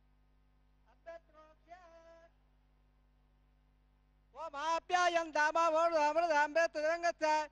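An elderly man chants in a steady, singing voice through a microphone.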